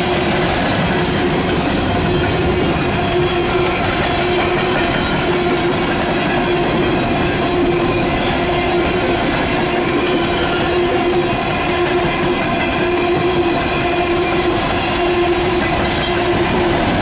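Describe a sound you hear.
Steel wheels squeal on a curved track.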